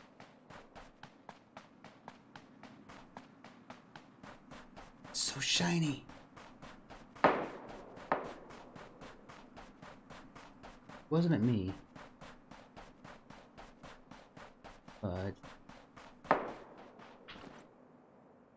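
Footsteps crunch quickly and steadily through snow.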